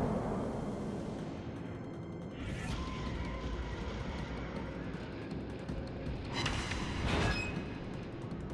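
Heavy guns boom in loud blasts.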